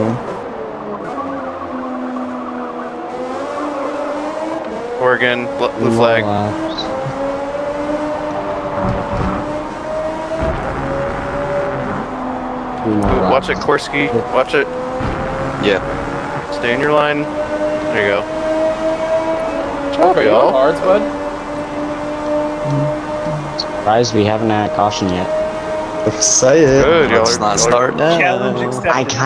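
A racing car engine whines loudly, rising in pitch and dropping sharply at each gear change.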